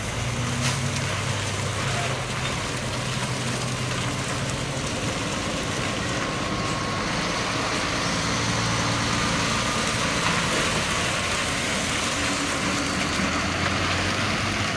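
Heavy truck engines rumble and idle nearby.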